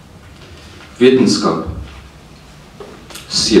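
A man reads out poetry calmly through a microphone.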